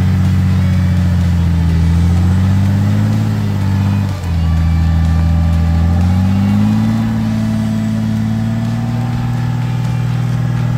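A car engine revs loudly and steadily, briefly dropping then rising again.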